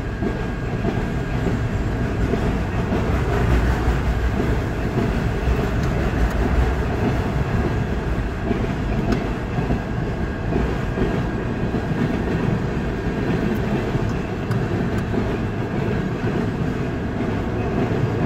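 A railroad crossing bell rings.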